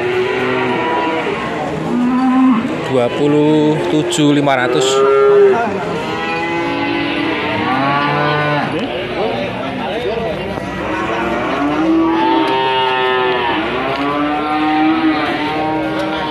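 Men talk with each other close by, outdoors.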